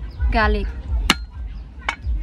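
A cleaver is set down on a wooden board with a knock.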